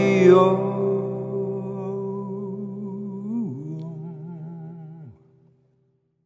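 An electric guitar chord rings out with vibrato and pitch bends, then fades away.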